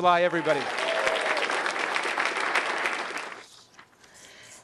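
A crowd applauds in a room.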